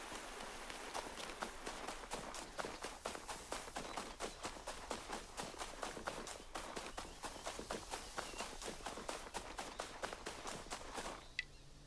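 Footsteps patter quickly through grass.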